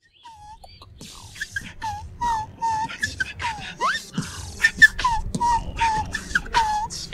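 A young man beatboxes up close, with sharp hissing bursts and whistled tones.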